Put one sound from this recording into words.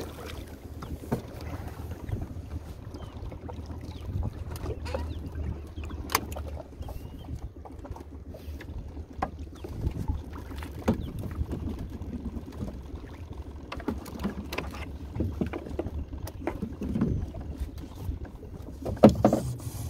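Water laps against the side of a small boat.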